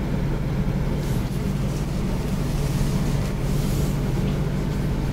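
A hand brushes and rustles across paper.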